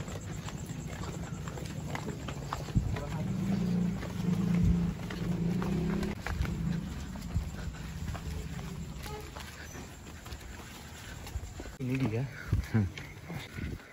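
Footsteps scuff along a hard path outdoors.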